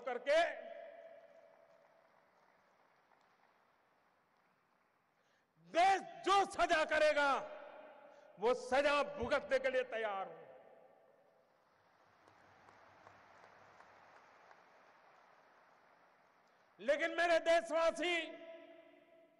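An elderly man speaks forcefully into a microphone over loudspeakers, in short bursts with pauses.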